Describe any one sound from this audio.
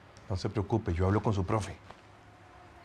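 A middle-aged man speaks calmly and reassuringly nearby.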